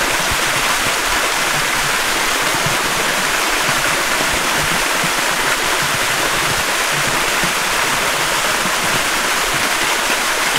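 A small waterfall splashes into a pool.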